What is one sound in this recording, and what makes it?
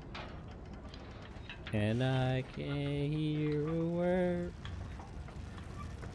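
A metal cage lift rattles and clanks as it rises.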